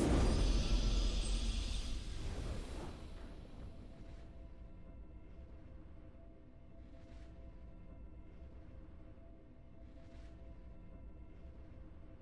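A triumphant fanfare plays and fades.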